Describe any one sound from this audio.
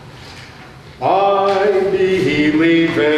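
An elderly man chants in a melody, heard through a microphone in an echoing hall.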